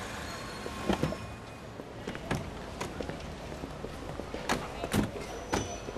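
A car door opens and shuts.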